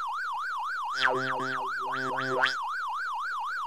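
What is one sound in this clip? A game's short jingle plays twice.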